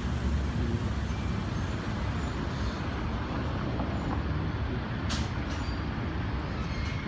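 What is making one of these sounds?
Traffic rumbles along a city avenue.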